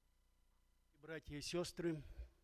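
A man speaks into a microphone in a large echoing hall.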